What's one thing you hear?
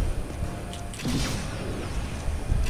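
An energy blast bursts with a loud zap.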